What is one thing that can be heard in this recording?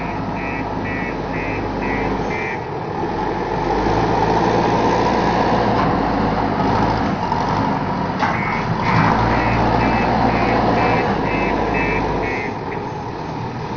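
A loader's reversing alarm beeps in a steady rhythm.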